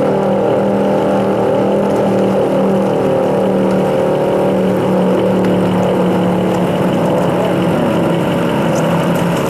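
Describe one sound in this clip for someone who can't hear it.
A powerboat engine roars loudly as the boat speeds across the water.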